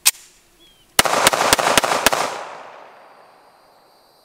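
Gunshots crack in rapid succession outdoors and echo away.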